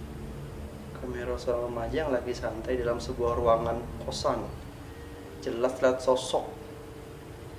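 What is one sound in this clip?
A young man talks close by, calmly, in short bursts.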